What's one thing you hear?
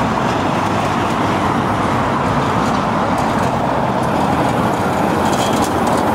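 A bus drives by.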